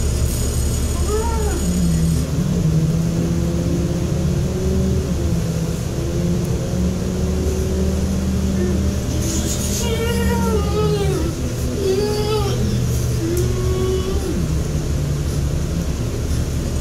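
A woman sings in long wavering notes close by.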